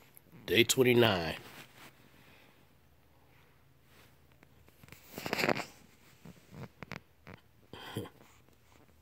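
A newborn puppy whimpers and squeaks close by.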